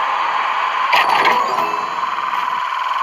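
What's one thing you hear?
Bright chimes ring as coins are picked up.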